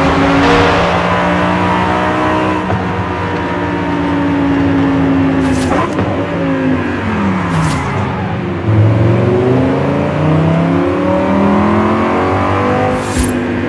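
A sports car engine roars, its pitch dropping as it slows and rising again as it speeds up.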